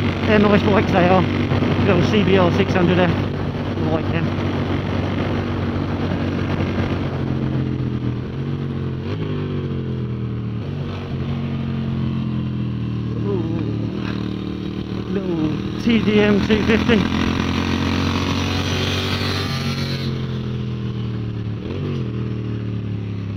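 A motorcycle engine roars steadily up close, its pitch rising and falling as it shifts gears.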